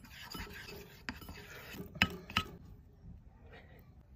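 A spoon stirs a thick paste in a ceramic bowl.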